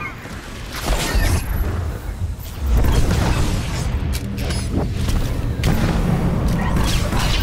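Deep rumbling booms sound during a sci-fi battle.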